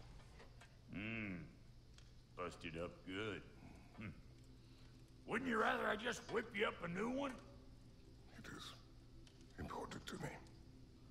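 A man speaks in a gruff, deep voice close by.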